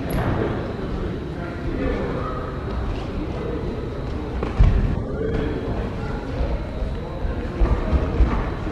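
Boxing gloves thump as fighters strike.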